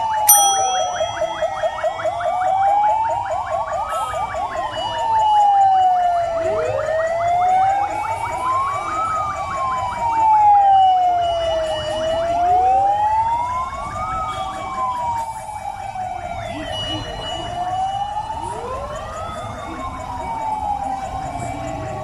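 Several sirens wail loudly, rising and falling over and over.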